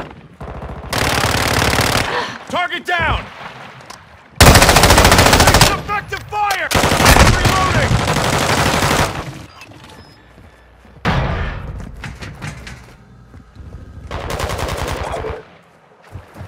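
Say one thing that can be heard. A rifle fires in rapid, loud bursts.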